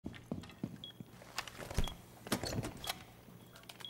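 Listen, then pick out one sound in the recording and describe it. A device is set down with a clunk.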